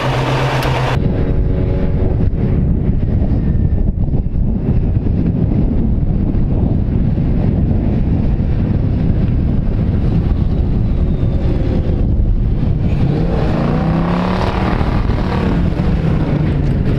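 Wind blows loudly outdoors.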